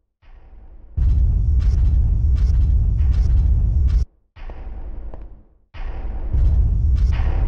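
A flamethrower roars in loud bursts.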